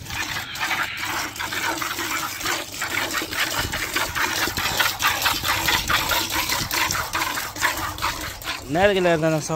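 Jets of milk spray hard and fast into a metal bucket.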